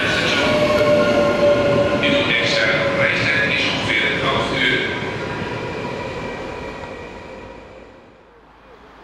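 A train rolls past close by with a loud rumble that fades away.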